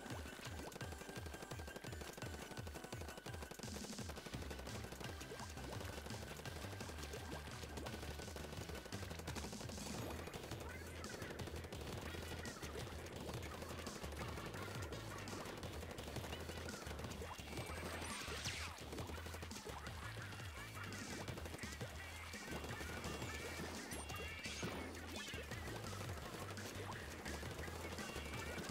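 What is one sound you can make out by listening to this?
Paint guns fire and splatter in quick bursts.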